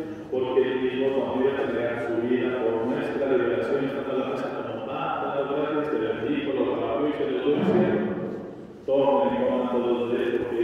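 An older man speaks steadily through a microphone in an echoing hall.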